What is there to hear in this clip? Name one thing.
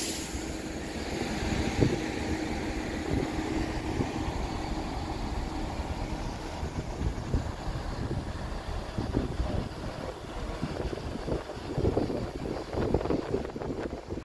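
A second train rolls slowly in.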